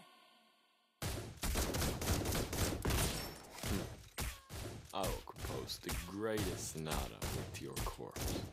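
Game sword strikes and magic blasts clash in quick bursts.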